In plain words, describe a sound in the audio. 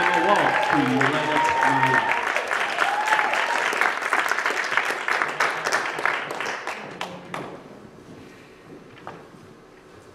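Dancers' shoes tap and slide on a wooden floor in a large echoing hall.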